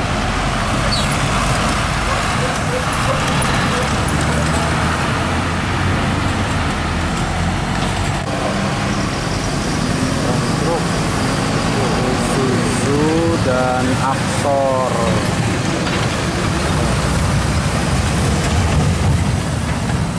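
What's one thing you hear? Heavy truck engines rumble loudly close by as they drive past.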